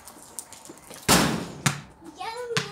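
A ball thumps against a metal wall.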